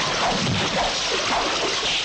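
Water splashes as people fall in.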